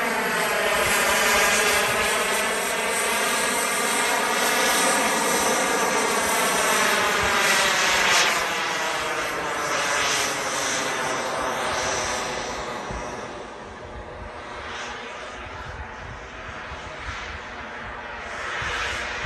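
A model jet engine whines loudly overhead, its pitch sliding as it passes and then fading into the distance.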